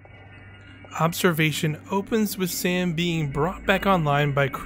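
A young woman speaks calmly and close, as if over a radio.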